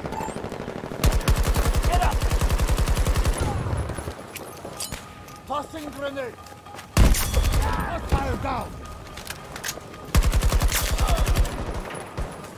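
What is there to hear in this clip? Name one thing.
Rapid automatic gunfire bursts loudly.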